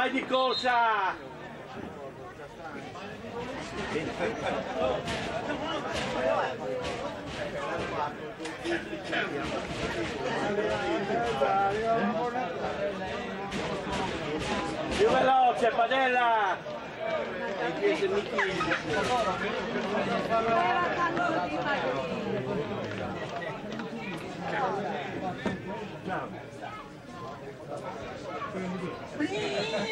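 Men's voices shout across an outdoor football pitch.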